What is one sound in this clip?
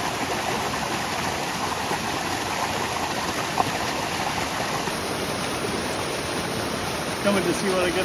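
Water sloshes and swirls in a pan.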